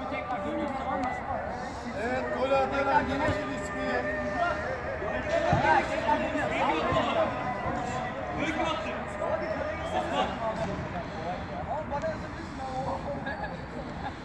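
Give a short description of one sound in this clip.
Several young men talk and shout over each other nearby.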